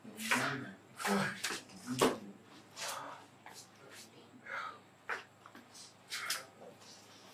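A man sighs and breathes heavily.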